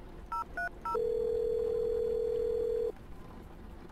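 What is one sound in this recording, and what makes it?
A phone line gives a steady ringing tone.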